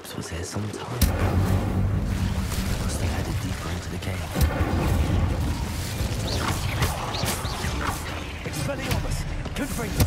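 Fiery blasts roar and crackle loudly.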